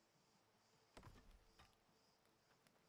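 An axe strikes a tree trunk with heavy thuds.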